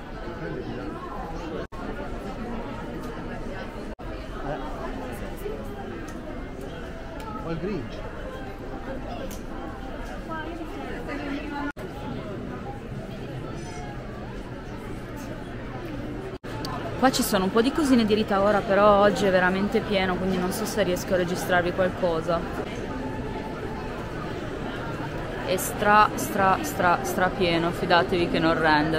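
Shoppers murmur in a large, echoing hall.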